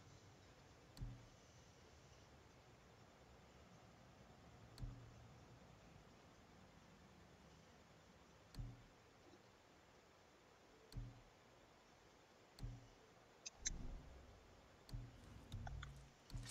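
A soft game menu click sounds each time the selection moves.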